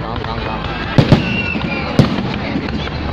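A rocket whistles as it shoots up.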